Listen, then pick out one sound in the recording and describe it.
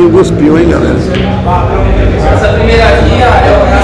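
Pool balls click sharply together.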